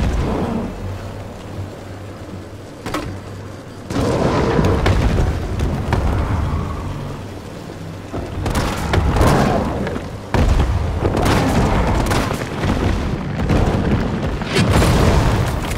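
Gunshots bang out one after another.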